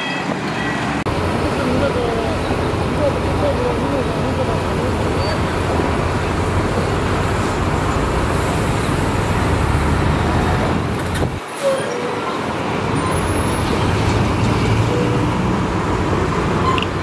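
A bulldozer engine roars.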